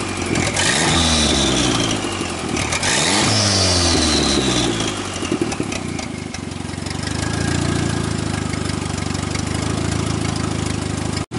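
A car engine idles roughly, revs up sharply twice and settles back to a loud, lumpy idle.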